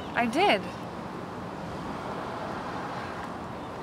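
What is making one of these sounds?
A young woman speaks close by, sounding puzzled.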